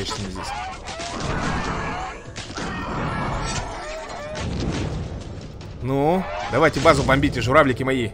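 Game battle sound effects clash and thud.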